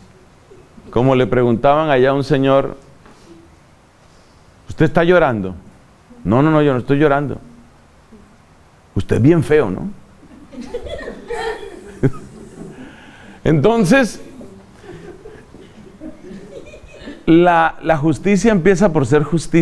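A middle-aged man speaks calmly into a microphone in bursts, with pauses between.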